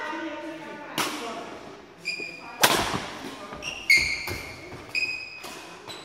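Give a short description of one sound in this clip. Badminton shuttlecocks are struck with sharp pops in a large echoing hall.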